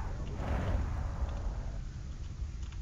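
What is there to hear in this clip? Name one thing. A laser weapon fires with a crackling burst.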